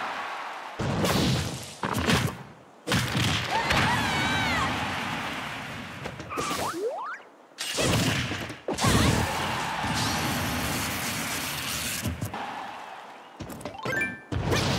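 Punches, slashes and blasts from a fighting video game crash in quick bursts.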